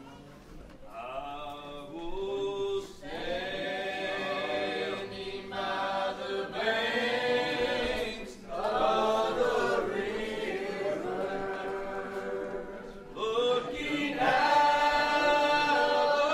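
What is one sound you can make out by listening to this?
A man sings into a microphone over a loudspeaker.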